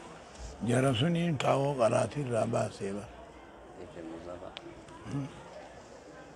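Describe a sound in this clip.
An elderly man speaks slowly into a microphone in an echoing hall.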